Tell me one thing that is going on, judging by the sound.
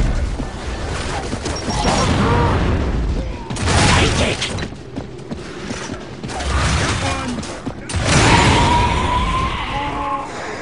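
Shotgun blasts boom loudly.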